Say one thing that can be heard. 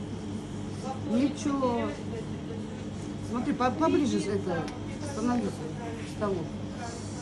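An elderly man speaks close by between bites.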